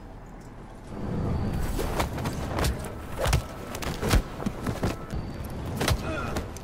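Heavy blows land with sharp thuds in a fight.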